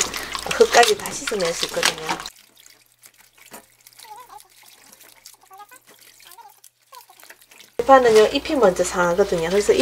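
Water splashes and sloshes as hands rinse vegetables in a bowl.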